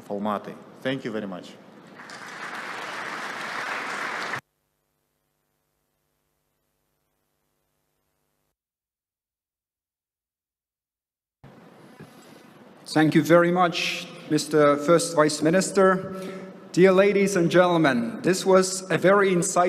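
A man speaks calmly into a microphone in a large hall.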